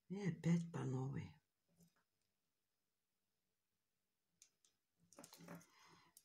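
Pliers click faintly against small metal beads.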